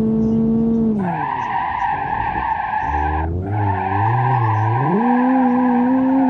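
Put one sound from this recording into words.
Tyres screech loudly as the car skids.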